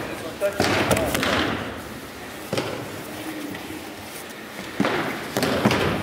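Bare feet shuffle and slide on a mat.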